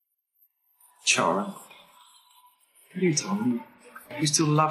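A man speaks calmly and firmly, close by.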